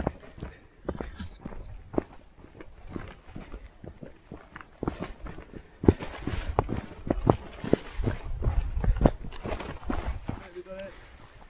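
Footsteps brush through dense bushes.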